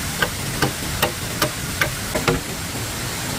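A blade chops into bamboo with sharp, regular knocks.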